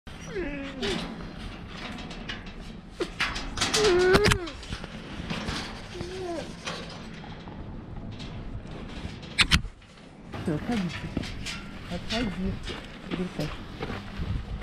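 Wolves whine and yelp close by.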